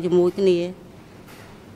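An elderly woman speaks briefly into a microphone.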